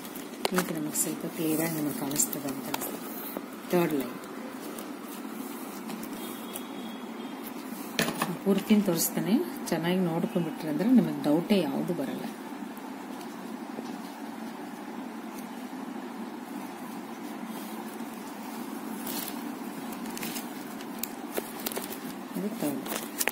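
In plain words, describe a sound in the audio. Stiff plastic strands rustle and click as they are woven by hand.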